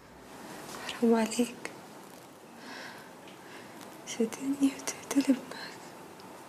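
A young woman speaks weakly and faintly, close by.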